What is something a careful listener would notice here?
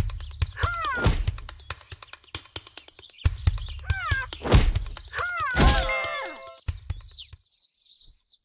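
Blows thud as a rhinoceros charges and fights in a video game.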